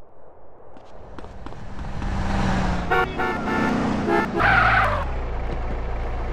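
A car engine runs and revs nearby.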